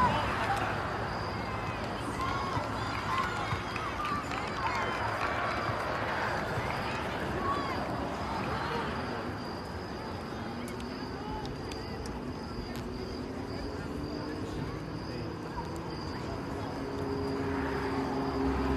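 A crowd of spectators chatters outdoors nearby.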